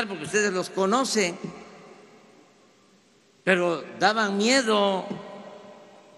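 An older man speaks firmly into a microphone in short phrases, with an echo trailing off after each.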